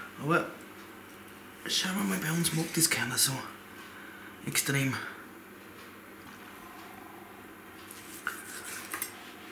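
A knife slices through cooked meat on a wooden board.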